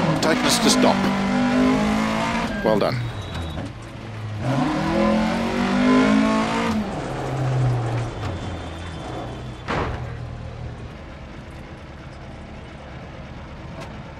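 A rally car engine revs hard, then drops to a low idle.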